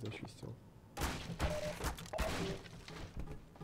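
A crowbar smashes a wooden crate apart with loud cracks.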